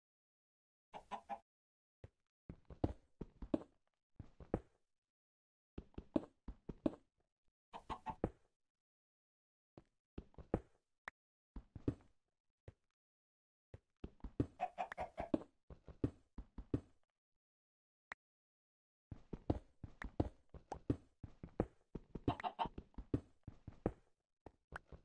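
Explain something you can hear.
A pickaxe chips at stone with quick repeated knocks.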